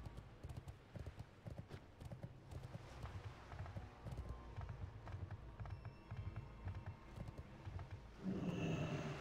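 Hooves clop on a wooden floor.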